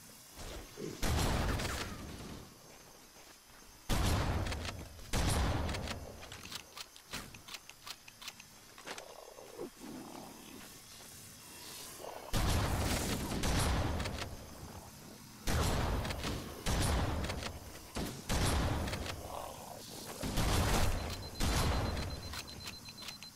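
A pump-action shotgun fires loud blasts.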